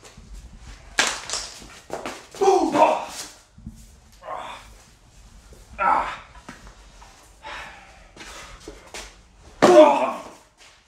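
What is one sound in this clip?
A shovel strikes a man with a loud smack.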